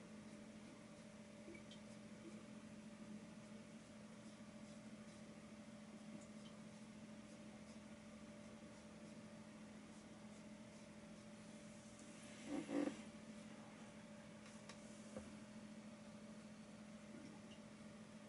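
A paintbrush dabs and scrapes softly on a canvas.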